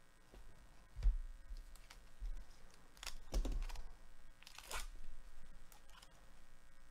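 A foil card pack crinkles and tears open.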